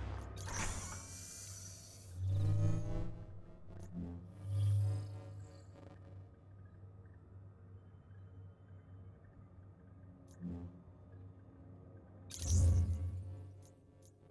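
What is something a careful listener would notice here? Soft electronic whooshes sweep as menus open and close.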